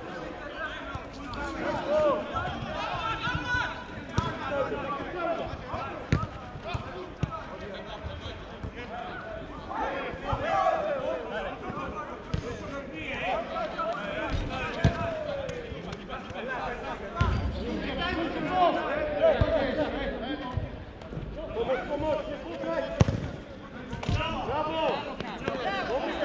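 Men shout to each other across an outdoor pitch at a distance.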